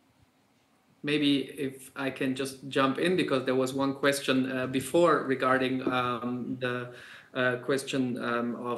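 A man speaks calmly over an online call through a loudspeaker.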